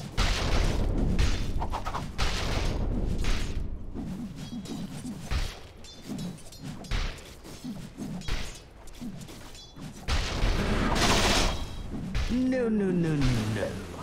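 Magic spells and weapon strikes crackle and clash in a video game battle.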